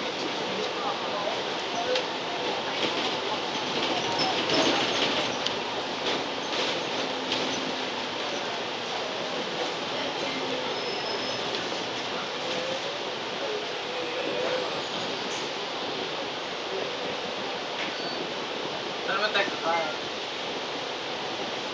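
A bus engine rumbles steadily, heard from inside the bus.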